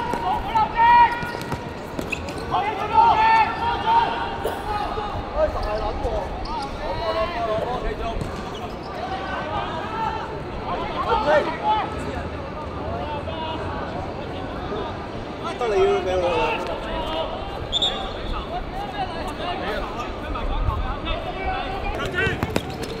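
Young men call out to one another outdoors.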